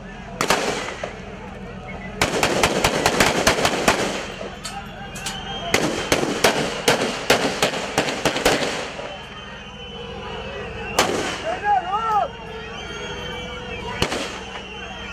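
Rapid bursts of gunfire crack out close by.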